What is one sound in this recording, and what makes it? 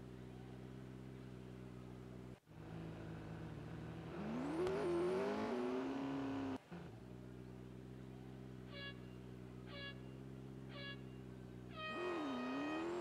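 A race car engine idles with a low, steady rumble.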